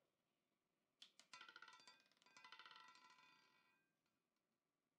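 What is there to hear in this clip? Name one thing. A roulette ball rattles and clatters as it bounces into the spinning wheel's pockets.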